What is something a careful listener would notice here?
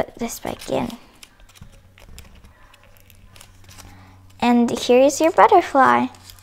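Paper rustles and crinkles softly as it is folded.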